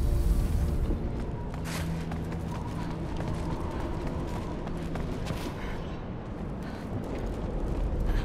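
Footsteps crunch over gravel and snow.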